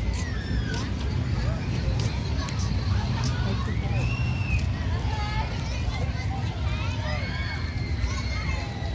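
Children shout and squeal at play in the distance.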